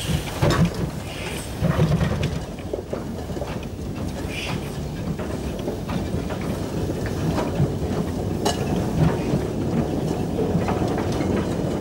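Steel wheels clank and rumble slowly along rails.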